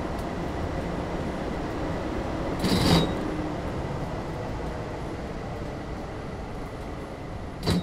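A tram rumbles steadily along rails.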